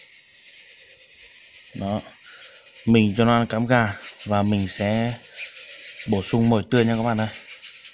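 A wooden stick stirs wet seeds in a ceramic cup.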